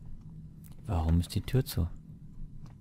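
A door latch clicks and a wooden door creaks open.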